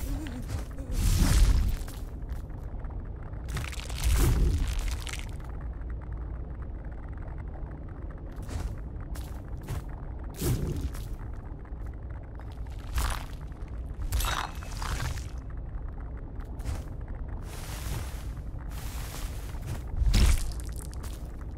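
A heavy impact booms.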